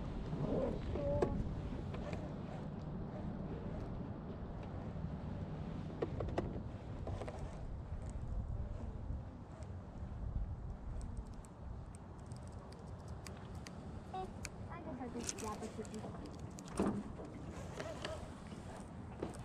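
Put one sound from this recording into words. A fishing reel clicks as line is wound in.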